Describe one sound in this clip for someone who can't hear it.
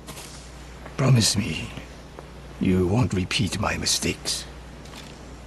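A middle-aged man speaks calmly and gravely.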